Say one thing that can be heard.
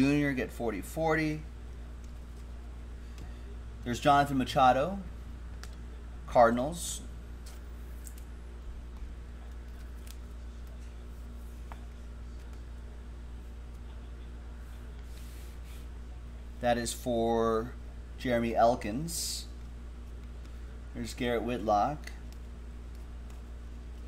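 Trading cards rustle and slide as hands shuffle them.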